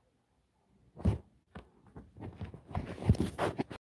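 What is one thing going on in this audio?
A hand bumps and rubs against the microphone.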